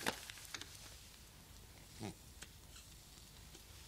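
A man puffs on a cigar.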